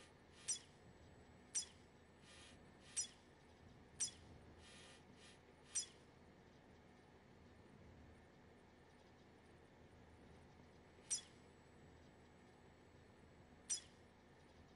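Short, sharp electronic menu clicks sound now and then.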